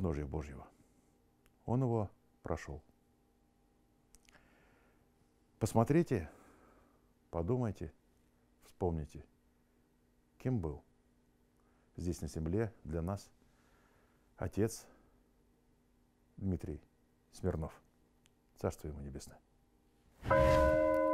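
A middle-aged man speaks slowly and solemnly into a close microphone, with long pauses.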